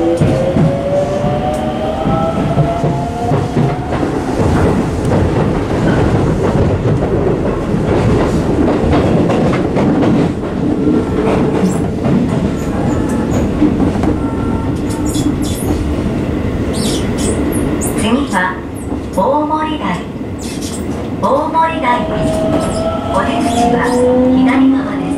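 A train rumbles and rattles loudly along the track.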